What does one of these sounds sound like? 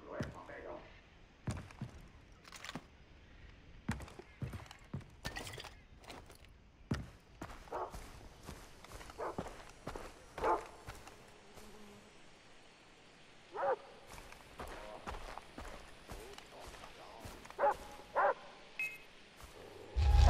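Footsteps crunch on dirt and grass.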